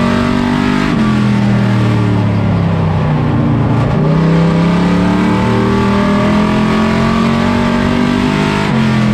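A race car engine roars loudly up close, its pitch rising and dropping with gear changes.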